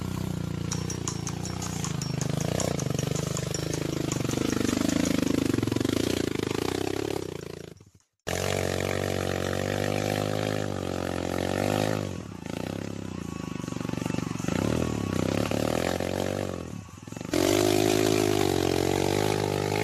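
A dirt bike engine revs hard.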